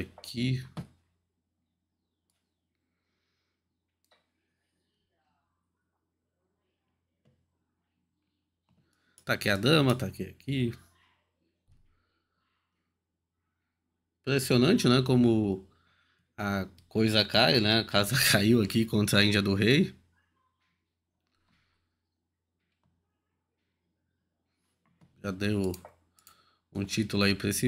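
A man talks calmly into a close microphone, in bursts with long pauses.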